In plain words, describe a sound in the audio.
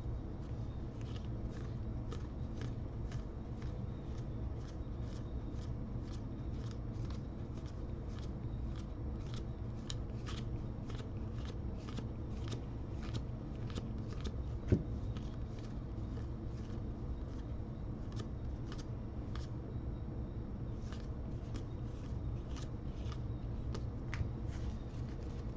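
Cards flick and snap softly as they are shuffled through by hand, one after another.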